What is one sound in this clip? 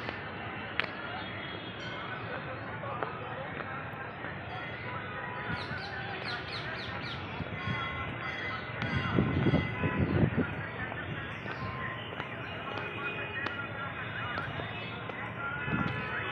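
Footsteps crunch on top of an old stone wall outdoors.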